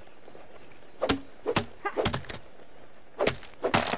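A tool chops at stiff grass stalks with sharp, quick thuds.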